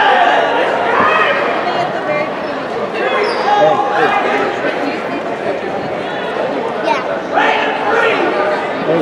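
A man talks to a group of players up close.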